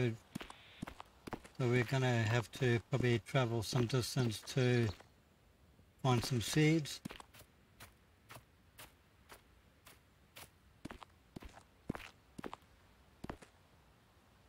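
Footsteps swish through tall grass.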